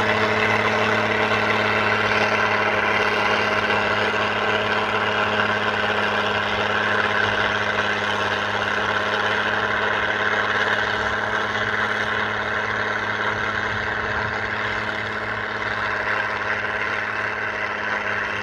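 A tractor engine drones steadily nearby and slowly recedes.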